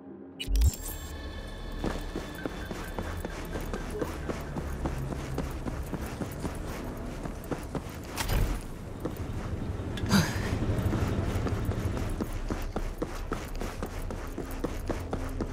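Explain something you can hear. Quick footsteps run across hard ground.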